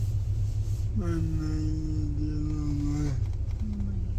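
A young man makes long, drawn-out sounds with his voice, close by.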